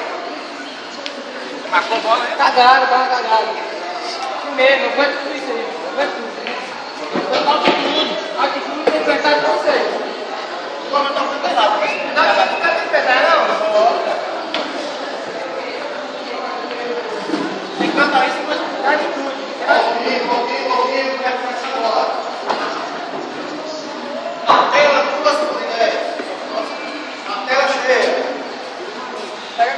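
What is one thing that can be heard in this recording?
Young men talk and chatter nearby.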